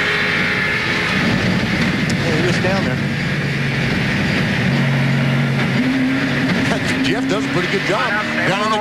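Tyres skid and scrape across grass and dirt.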